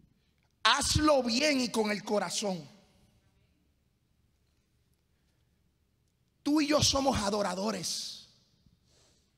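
A man preaches with passion into a microphone, his voice carried over loudspeakers in a large room.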